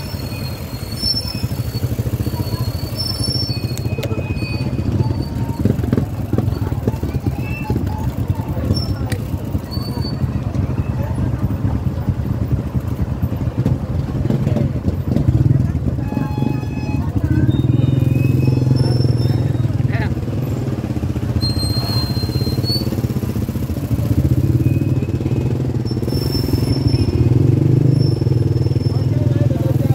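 Motor tricycle engines rumble and idle close by.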